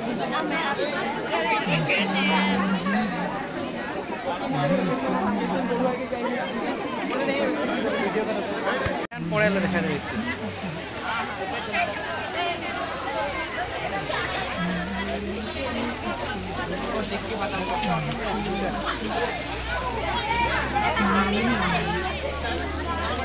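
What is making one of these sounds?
A large crowd of young people chatters loudly outdoors.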